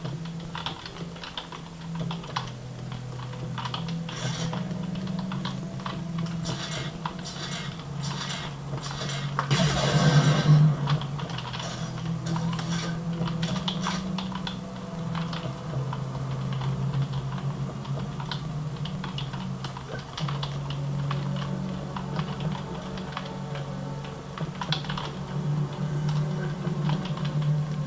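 Video game gunfire and explosions play from small speakers.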